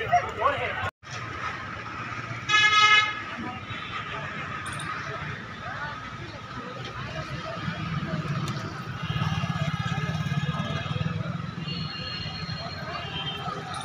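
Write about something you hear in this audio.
A crowd of men and women murmur and talk.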